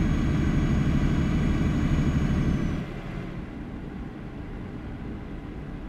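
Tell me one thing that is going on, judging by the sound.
A truck engine rumbles low and steady, then drops quieter.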